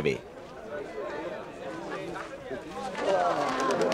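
A pigeon flaps its wings as it takes off.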